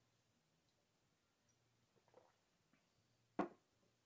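A man sips a drink.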